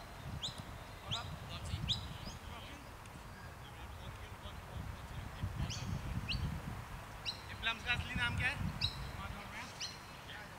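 Wind rumbles across an open field outdoors.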